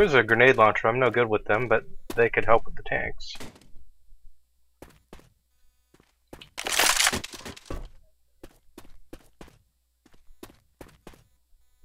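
Guns fire in short bursts.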